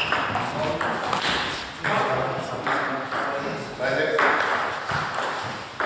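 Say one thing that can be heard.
A ping-pong ball clicks back and forth on a table and paddles.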